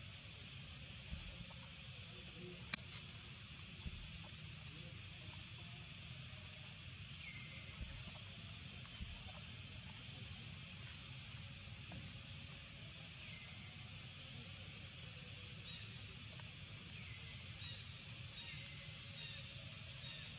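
Leaves rustle as small monkeys shuffle on the ground.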